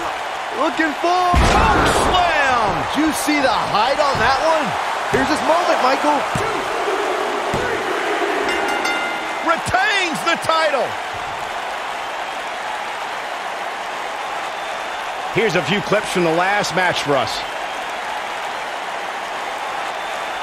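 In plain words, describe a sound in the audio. A crowd cheers loudly and steadily in a large arena.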